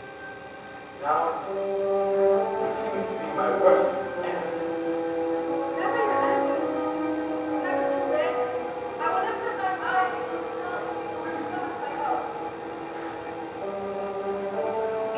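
Young performers sing together in an echoing hall.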